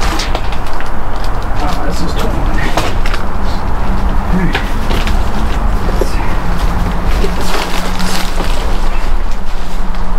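Plastic bags and packaging rustle and crinkle as hands rummage through them.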